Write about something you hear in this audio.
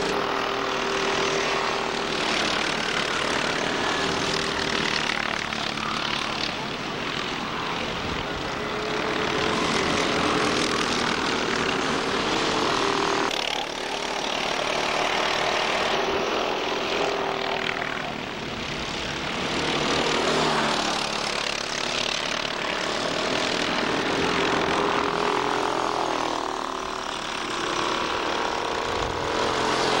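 Kart engines buzz and whine loudly as karts race past.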